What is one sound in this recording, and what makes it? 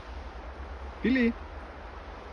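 A dog gives a short yelp nearby.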